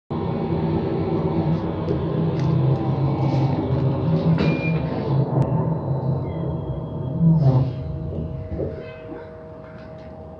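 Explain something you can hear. A bus cabin rattles and creaks over the road.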